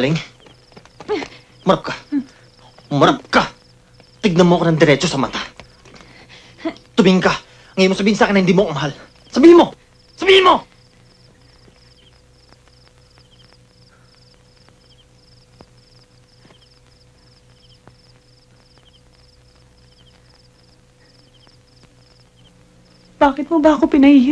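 A woman speaks softly and emotionally close by.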